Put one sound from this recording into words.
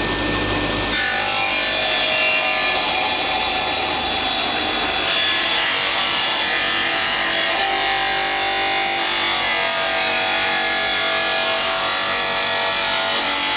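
A table saw whines loudly as it cuts through wood.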